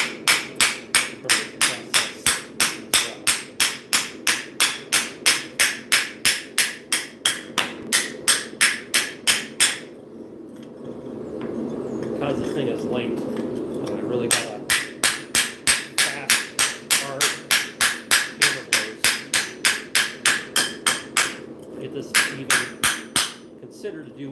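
A hammer strikes metal on an anvil in a fast, steady rhythm, with sharp ringing blows.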